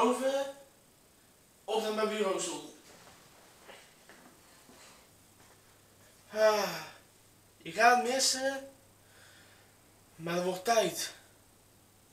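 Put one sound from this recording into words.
A young man speaks close by in short, animated bursts.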